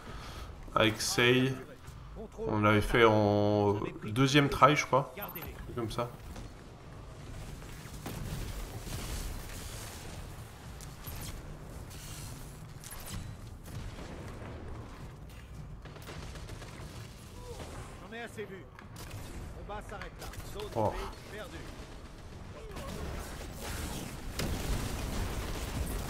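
Gunshots and explosions sound from a video game.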